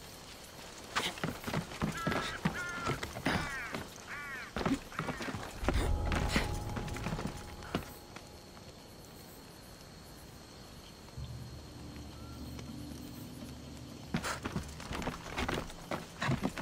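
Hands and feet knock against wooden beams while climbing.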